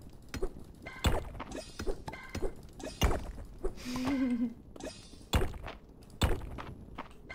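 A pickaxe chips at stone with sharp knocks.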